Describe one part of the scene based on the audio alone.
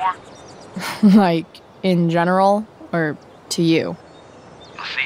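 A young woman speaks calmly into a phone.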